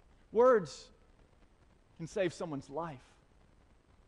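A man speaks through a microphone in short bursts.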